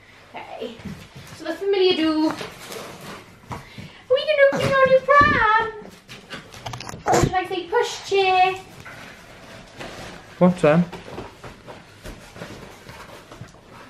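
Cardboard flaps rustle and thump as a box is opened.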